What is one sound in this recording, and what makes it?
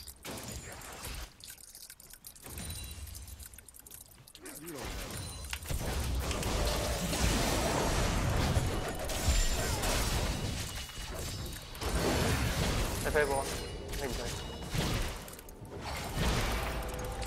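Fast game sound effects of clashing attacks and spells play through speakers.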